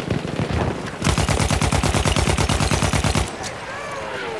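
A machine gun fires a rapid burst of shots.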